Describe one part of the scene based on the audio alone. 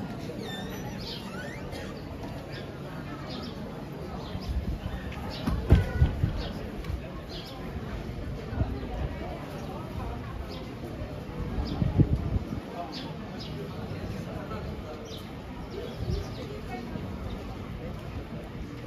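A crowd of adults murmurs and chatters at a distance outdoors.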